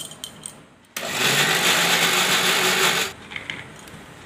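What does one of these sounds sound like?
An electric mixer grinder whirs loudly, then stops.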